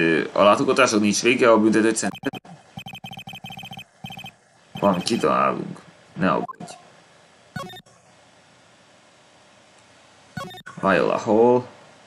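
A young man talks casually and close into a microphone.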